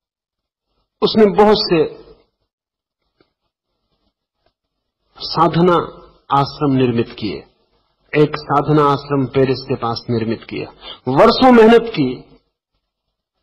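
An elderly man speaks calmly and slowly, in pauses.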